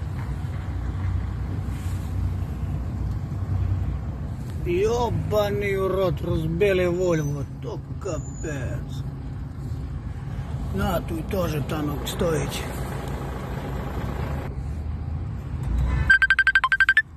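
A vehicle engine rumbles low and steady from inside the cab.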